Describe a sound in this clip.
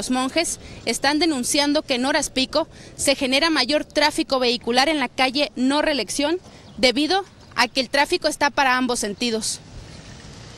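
A woman speaks steadily into a microphone, close by.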